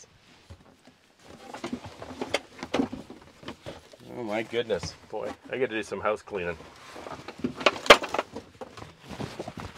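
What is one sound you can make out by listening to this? Objects knock and rattle inside a tractor cab.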